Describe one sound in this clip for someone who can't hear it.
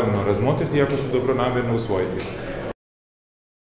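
A man speaks calmly into microphones at close range.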